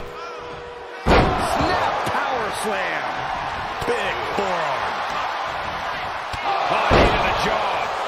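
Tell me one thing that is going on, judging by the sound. A heavy body thuds onto a wrestling mat.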